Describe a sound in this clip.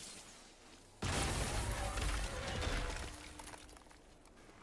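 Ice crashes and rumbles loudly.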